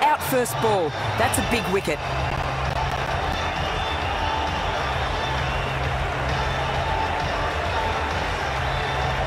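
A large stadium crowd murmurs and cheers steadily in the distance.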